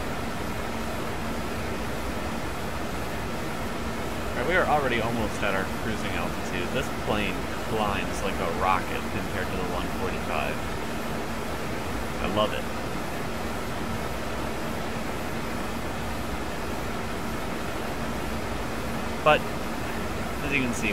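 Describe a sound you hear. Jet engines drone steadily.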